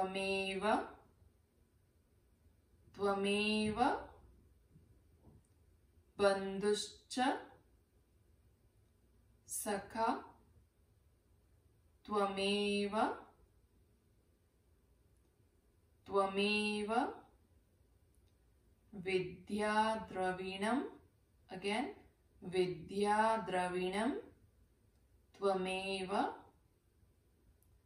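A young woman chants calmly in short, drawn-out phrases close by, pausing between them.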